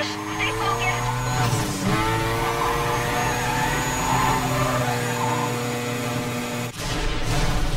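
A racing car engine roars at high speed, rising and falling in pitch.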